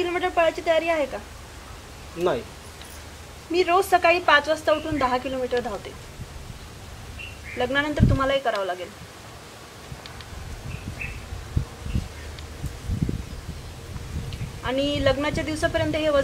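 A young woman speaks emotionally, close by.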